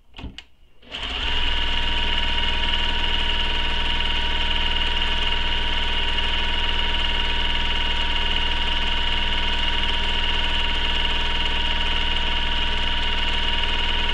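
A sewing machine whirs steadily at a constant speed.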